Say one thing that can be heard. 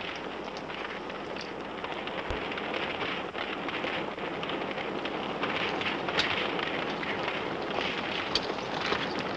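Horses gallop past with thundering hooves.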